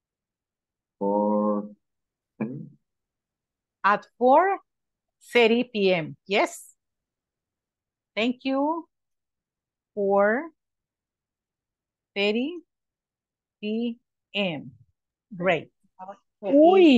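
A woman speaks slowly and clearly, like a teacher, heard through an online call.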